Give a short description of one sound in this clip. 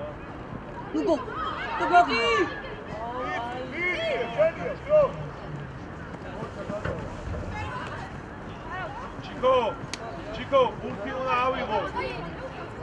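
Young men shout across an open football pitch outdoors.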